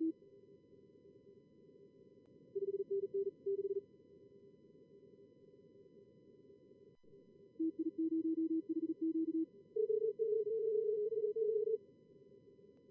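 A soft radio hiss runs steadily underneath.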